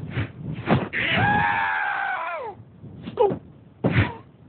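A cartoon bear yelps and cries out in a high, squeaky voice.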